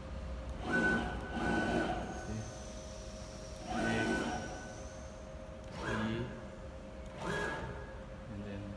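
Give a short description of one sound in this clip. Stepper motors whine in short bursts as a machine's carriage moves.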